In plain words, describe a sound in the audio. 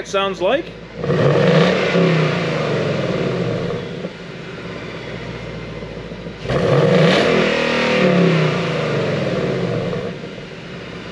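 A car engine revs loudly and falls back.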